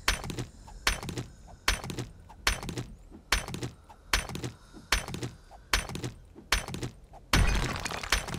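A stone axe strikes rock again and again in quick, regular knocks.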